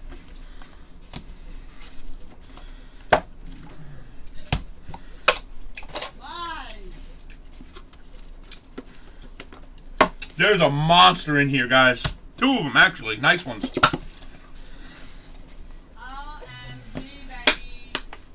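Cards and packs shuffle and tap against a table.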